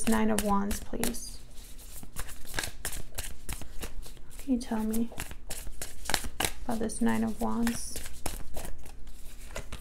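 Playing cards are shuffled by hand, with quick soft riffles and taps.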